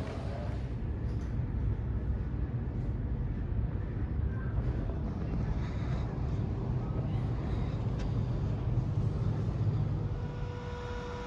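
An aircraft engine hums steadily, muffled through glass.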